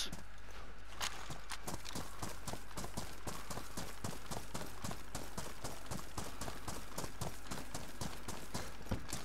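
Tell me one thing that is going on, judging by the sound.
Footsteps thud quickly over grass at a run.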